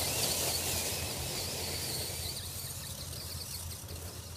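Dry leaves rustle and crunch under small wheels.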